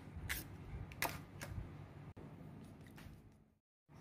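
Chopsticks whisk eggs in a bowl.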